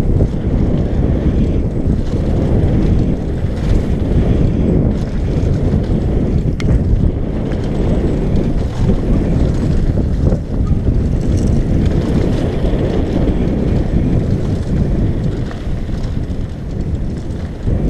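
Wind rushes loudly past, roaring and buffeting throughout.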